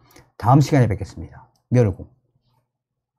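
A middle-aged man speaks calmly and closely into a microphone.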